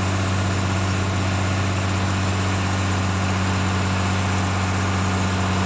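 A boat's outboard engine drones steadily at speed.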